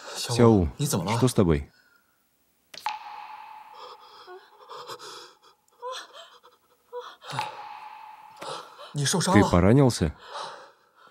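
A young man speaks with concern, close by.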